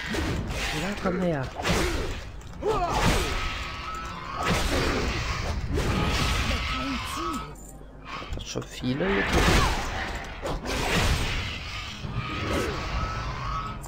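Fiery spells burst and roar in a fight.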